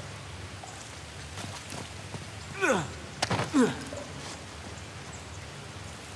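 Water rushes steadily nearby.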